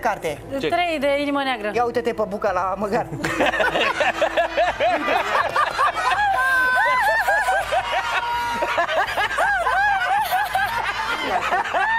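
A woman talks and laughs through a microphone.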